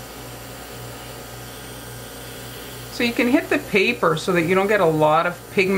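An airbrush hisses softly as it sprays.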